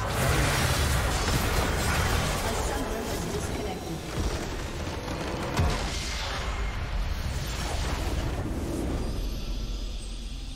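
Spells and attacks crash and whoosh in a fierce game battle.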